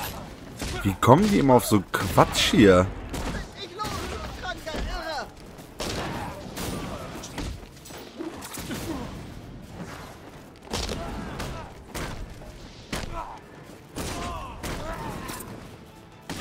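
Punches and kicks land with heavy thuds in a fast brawl.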